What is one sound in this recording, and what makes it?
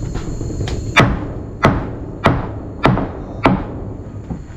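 A nail gun fires sharp shots into wooden boards at an even pace.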